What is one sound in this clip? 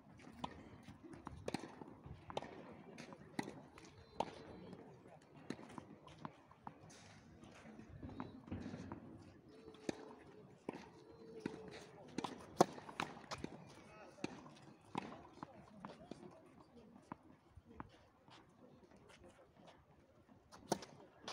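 A tennis ball bounces on clay with sharp thuds.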